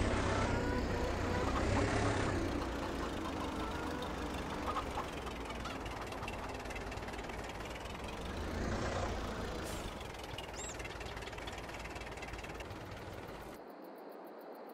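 A tractor engine rumbles and revs as it drives.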